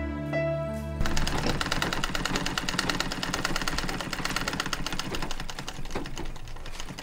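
A sewing machine whirs and clatters rapidly.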